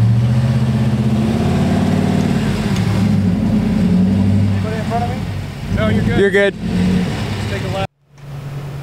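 A pickup truck's engine roars as it climbs a slope.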